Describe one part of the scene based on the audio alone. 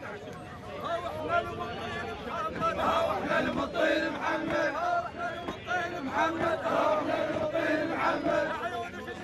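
A large crowd of men chants loudly outdoors.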